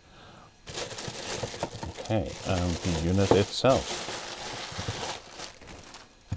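A plastic bag rustles and crinkles loudly close by.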